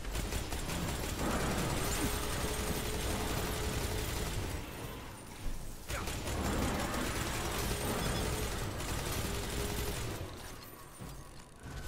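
A rapid-fire gun shoots in long bursts.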